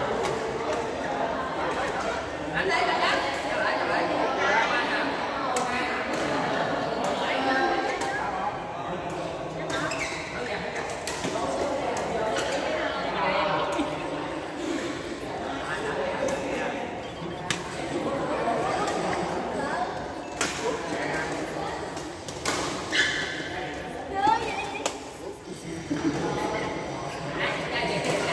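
Several people talk and call out in a large echoing hall.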